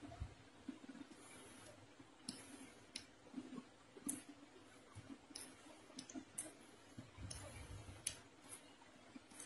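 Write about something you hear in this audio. Fingers tap and click against plastic pins and wires.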